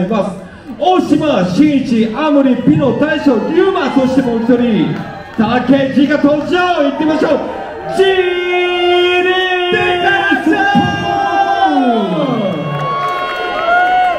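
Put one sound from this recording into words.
A young man raps energetically into a microphone over loudspeakers in a large hall.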